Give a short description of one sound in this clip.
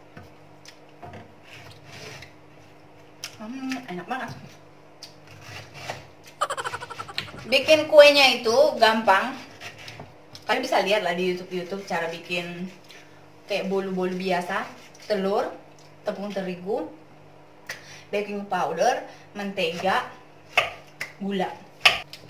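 A knife cuts through pineapple on a board.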